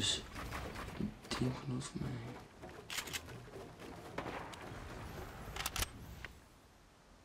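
Wooden planks knock into place in quick bursts.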